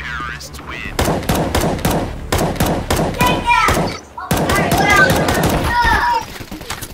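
A rifle fires in rapid bursts of sharp shots.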